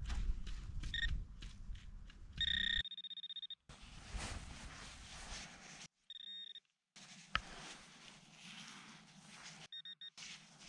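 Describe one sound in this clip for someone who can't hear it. A handheld pinpointer beeps in short, high bursts.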